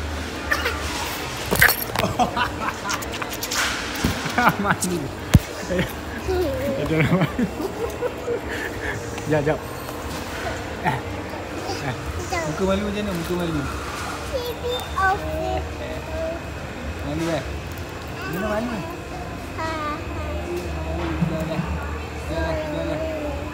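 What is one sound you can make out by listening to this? A toddler girl babbles and squeals close by.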